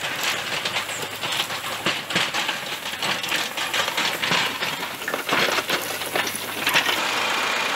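Soil and pine needles scrape under a loader's bucket.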